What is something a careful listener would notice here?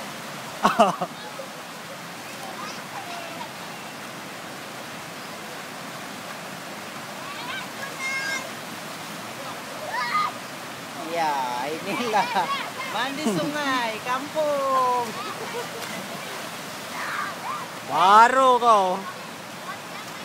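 Children shout and call out playfully nearby.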